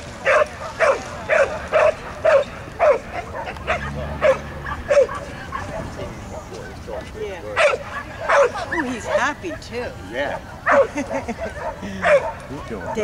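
A dog barks repeatedly outdoors.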